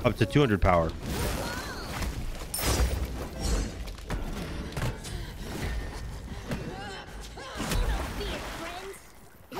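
Magic blasts crackle and thud during a fight.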